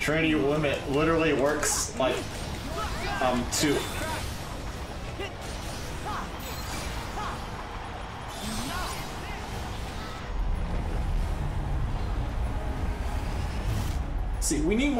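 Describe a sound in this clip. Video game sound effects whoosh and chime.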